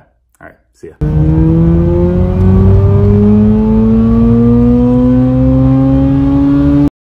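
A car engine revs loudly, rising in pitch as the car speeds up.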